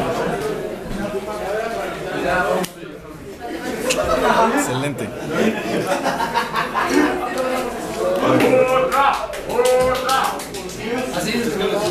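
A crowd of young people talks and shouts loudly nearby.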